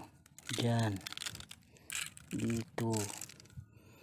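Dry palm fronds rustle and crackle under a hand.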